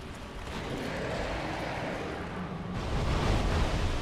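Water splashes and sprays heavily.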